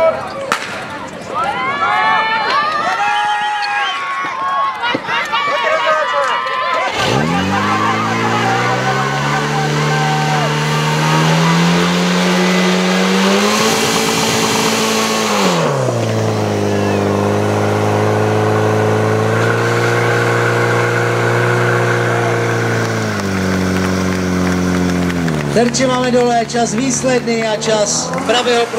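Children and adults cheer and shout excitedly outdoors.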